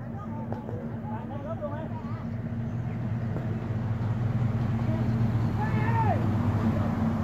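Young men shout to each other in the distance.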